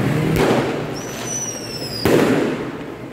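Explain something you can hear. A firework rocket whistles as it rises.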